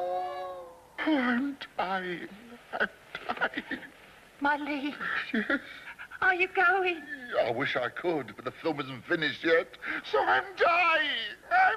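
A man groans and speaks in distress, close by.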